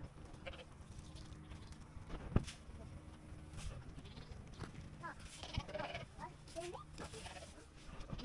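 A small child's footsteps patter on concrete.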